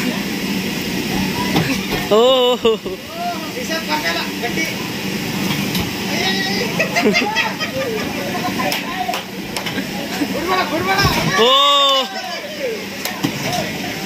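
Several men talk and laugh nearby.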